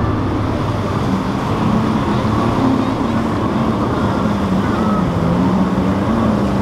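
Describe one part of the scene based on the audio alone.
A powerful motor yacht engine roars close by.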